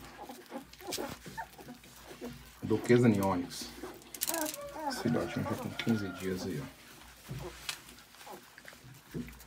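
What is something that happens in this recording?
Puppies suckle and squirm close by.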